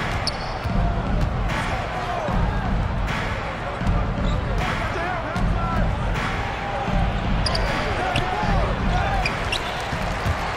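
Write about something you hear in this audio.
A basketball bounces on a hardwood court.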